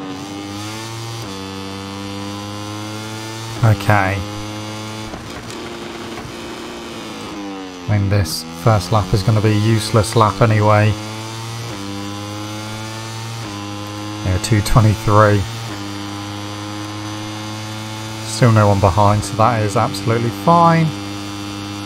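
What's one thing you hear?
A racing motorcycle engine roars and revs up and down through the gears.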